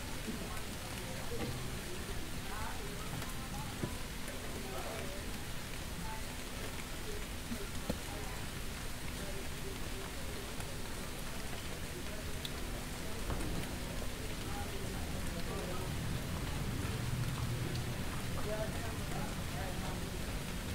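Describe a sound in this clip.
Several people talk in the distance outdoors.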